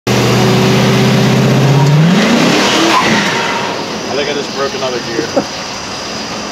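A truck's engine idles loudly with a deep rumble, then revs up as the truck pulls away.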